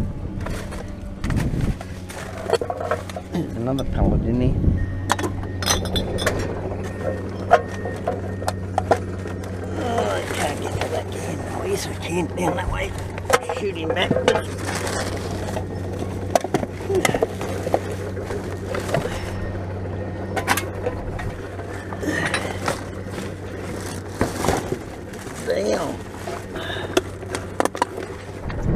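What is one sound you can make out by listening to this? Plastic bags and trash rustle and crinkle inside a bin.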